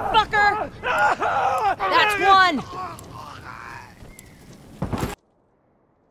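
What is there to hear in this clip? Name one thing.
A fire burns and crackles.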